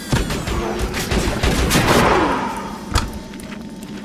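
A metal chest creaks open.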